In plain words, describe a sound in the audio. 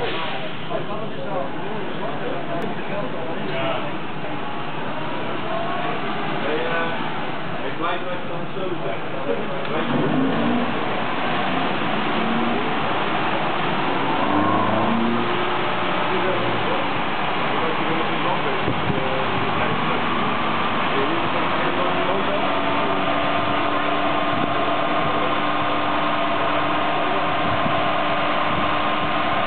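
A non-turbo four-cylinder petrol car engine revs up under load on a dyno.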